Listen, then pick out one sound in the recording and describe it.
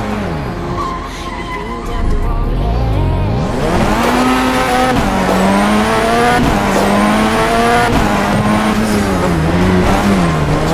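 A car engine revs and roars, rising and falling as gears shift.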